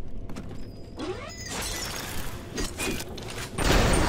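A fireball whooshes and bursts.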